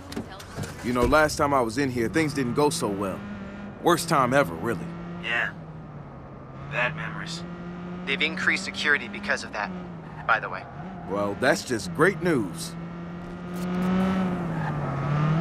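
A car engine hums steadily and rises and falls as the car drives.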